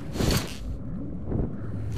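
An explosion booms and debris scatters.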